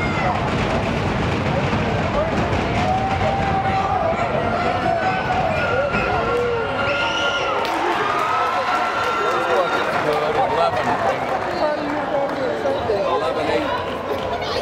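A crowd chatters and shouts throughout a large echoing gym.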